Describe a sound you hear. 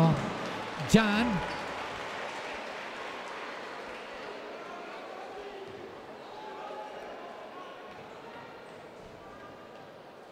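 A crowd in an arena cheers and applauds, then slowly quiets.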